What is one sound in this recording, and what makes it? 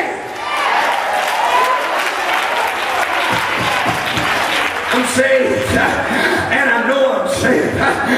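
A man preaches loudly and passionately into a microphone in a large echoing hall.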